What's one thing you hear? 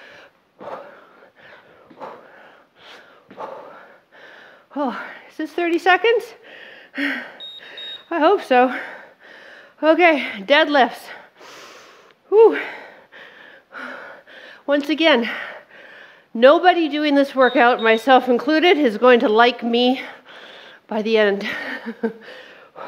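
A woman speaks with energy into a close microphone.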